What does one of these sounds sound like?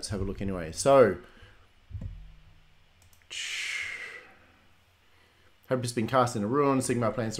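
A man talks with animation into a close microphone, pausing between phrases.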